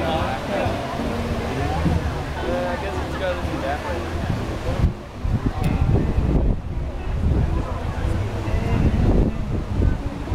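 Waves break and wash onto the shore.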